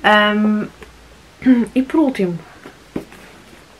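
Pages of a book rustle and flap.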